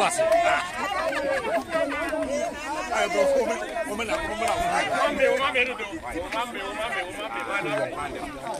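A crowd of men and women sings loudly close by.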